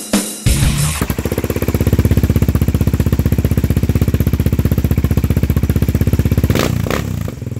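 A quad bike engine idles with a fast, steady rumble.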